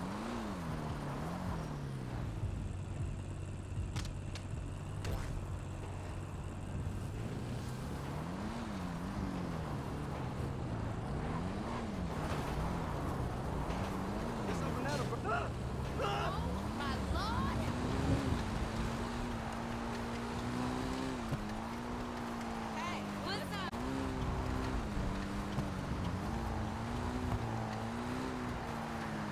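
A motorbike engine hums and revs up and down.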